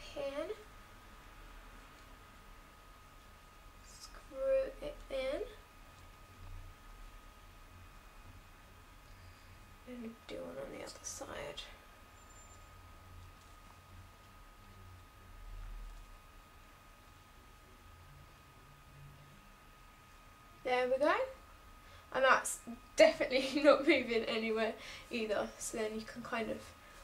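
A young woman talks calmly and close by, in bursts with pauses.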